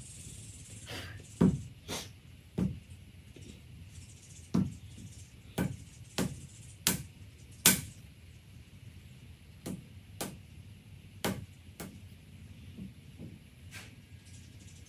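A wooden tool knocks sharply against a hard table several times.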